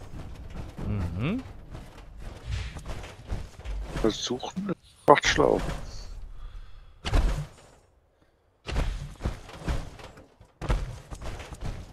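Heavy metal footsteps clank and thud on hard ground.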